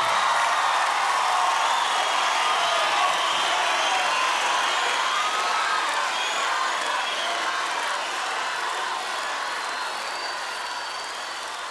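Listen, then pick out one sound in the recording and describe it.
A large crowd cheers and screams loudly, slowly fading.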